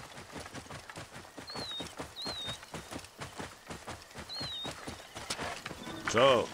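A horse gallops with rapid, steady hoofbeats.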